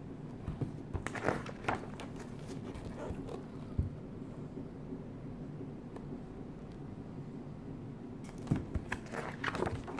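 Paper pages rustle as a book's pages are turned close by.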